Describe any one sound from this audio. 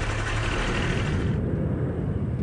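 A truck engine rumbles as the truck drives over dirt.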